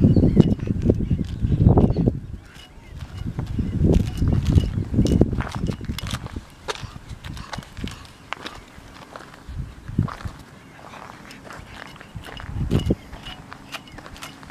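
A dog sniffs eagerly at the ground close by.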